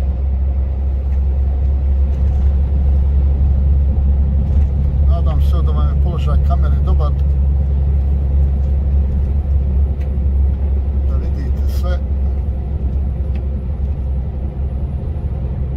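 A large vehicle's engine drones steadily from inside the cab.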